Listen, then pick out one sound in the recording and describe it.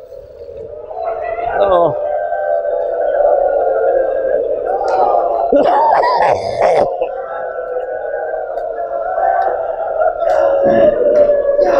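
A middle-aged man weeps and wails into a microphone.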